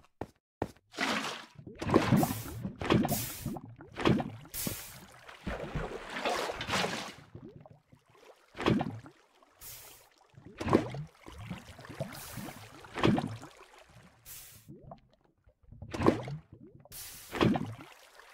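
Water pours and splashes in bursts.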